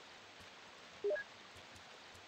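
A short electronic chime sounds from a menu.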